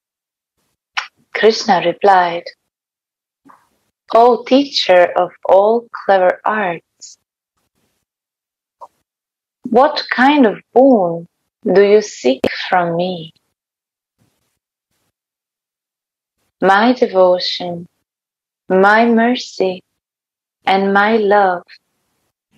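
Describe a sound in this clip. A young woman chants melodic phrases over an online call, with pauses between them.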